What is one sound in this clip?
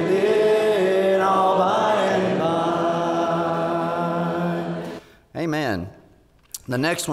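A man preaches with animation through a microphone in a reverberant hall.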